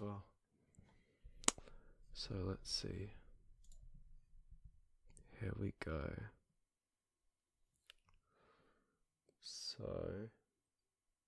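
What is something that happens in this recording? A young man speaks softly and close into a microphone.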